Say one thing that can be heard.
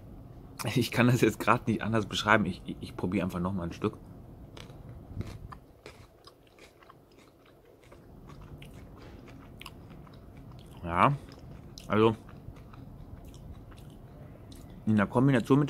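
A crispy snack bar crackles as it is broken apart.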